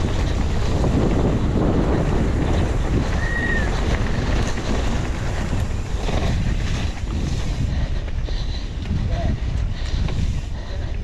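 Bike tyres roll and skid over loose dirt.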